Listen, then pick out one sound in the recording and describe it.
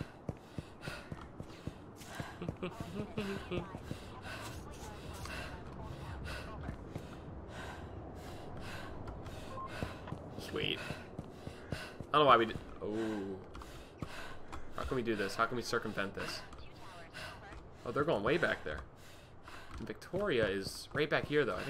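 Footsteps tap steadily on pavement.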